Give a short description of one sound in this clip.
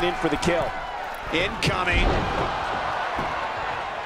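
A body slams down hard onto a wrestling ring mat.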